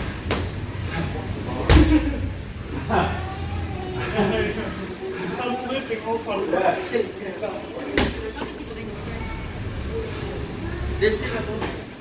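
Gloved punches thud sharply against pads.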